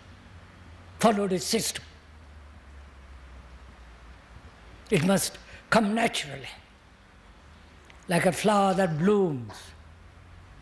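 An elderly man speaks slowly and deliberately into a microphone, in short phrases with long pauses.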